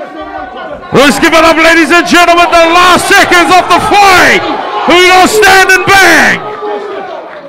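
A man announces loudly over a loudspeaker in a large echoing hall.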